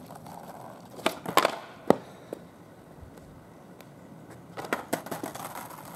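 A skateboard clatters and smacks onto asphalt.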